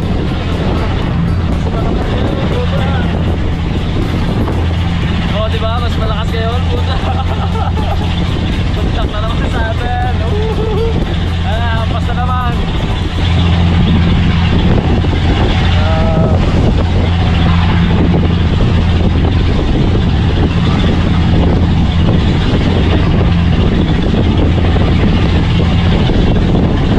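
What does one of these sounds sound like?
A boat engine drones steadily and loudly.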